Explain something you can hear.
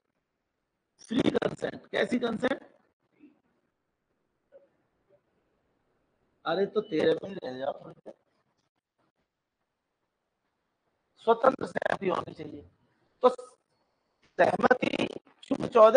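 A middle-aged man lectures calmly, heard close through a microphone.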